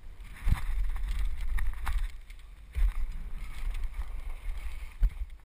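A bicycle rattles and thumps as it lands from jumps.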